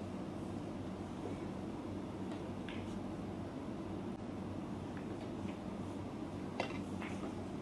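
Snooker balls click softly against each other.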